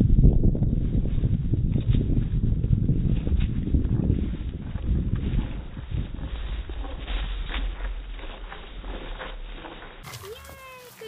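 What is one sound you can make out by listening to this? A dog's paws patter quickly across grass.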